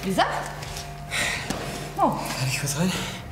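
A young woman talks up close.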